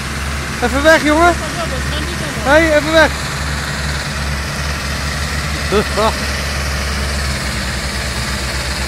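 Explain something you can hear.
Tractor engines rumble and labour steadily close by.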